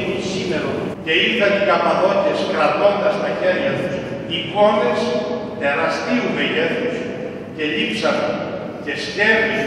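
A man speaks with feeling into a microphone in an echoing hall.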